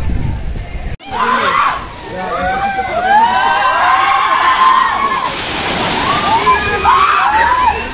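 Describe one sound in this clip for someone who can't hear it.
Young people shout and cheer excitedly nearby.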